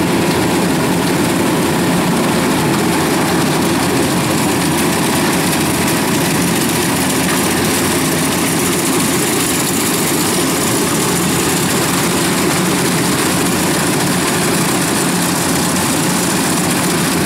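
A combine harvester engine rumbles steadily nearby.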